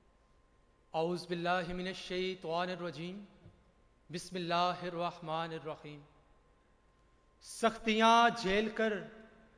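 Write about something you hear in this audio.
A young man speaks with animation into a microphone in a large hall.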